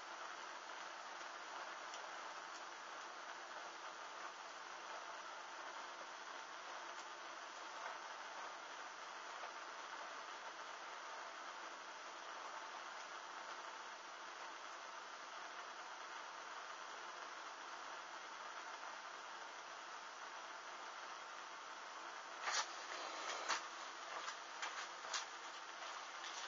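A small flame flickers and hisses softly.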